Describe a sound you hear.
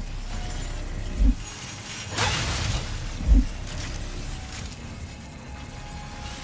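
Metal grinding screeches steadily as a character slides along a rail.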